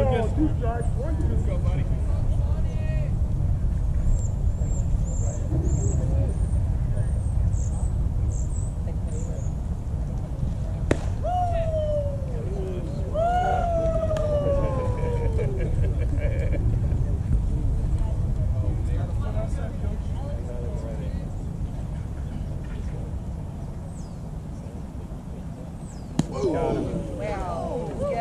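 Wind blows steadily across an open field outdoors.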